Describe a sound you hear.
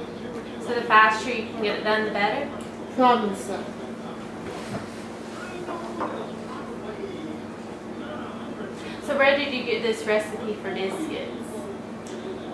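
An elderly woman talks calmly, close by.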